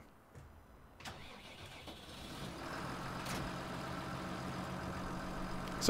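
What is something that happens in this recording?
A tractor engine idles with a low, steady rumble that grows louder.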